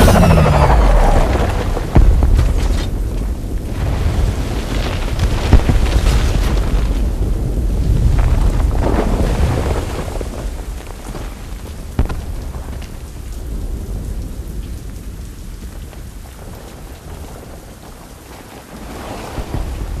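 Fires crackle on a burning building.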